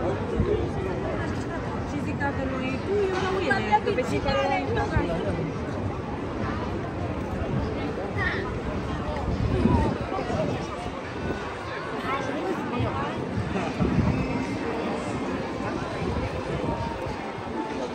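A crowd of people chatters and talks all around outdoors.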